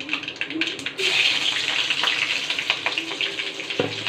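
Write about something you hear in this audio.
Chopped vegetables drop into hot oil and sizzle loudly.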